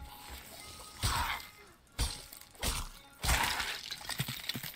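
A metal blade clangs against rock in sharp strikes.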